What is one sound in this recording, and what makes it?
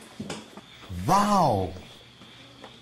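A woman exclaims loudly, close by, with a rising and falling voice.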